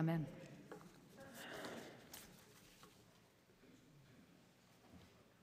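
Paper rustles as a woman gathers pages.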